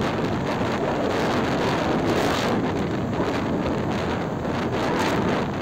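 Wind roars and buffets against a rider's helmet on a moving motorcycle.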